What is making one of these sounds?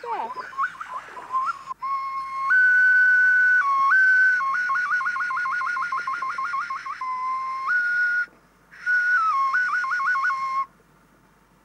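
A man blows a shrill bird call whistle close by, warbling and trilling between two notes.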